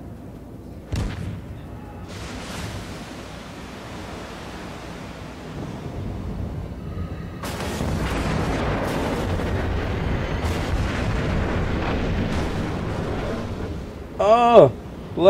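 Naval guns boom in the distance.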